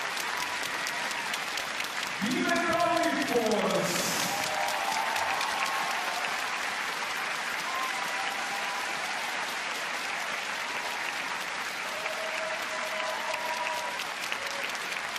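A large crowd claps steadily in a big echoing arena.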